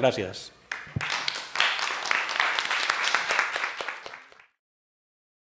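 People clap and applaud in a room.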